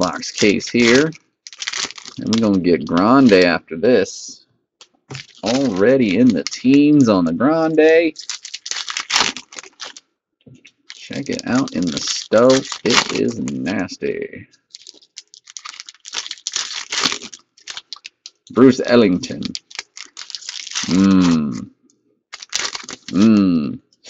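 Foil wrappers crinkle and tear as card packs are opened.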